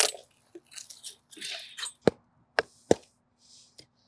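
A heavy block knocks against the ground.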